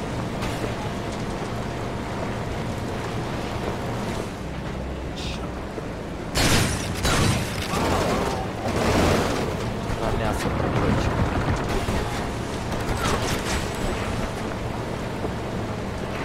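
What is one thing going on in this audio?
Tyres crunch and rumble over bumpy ground.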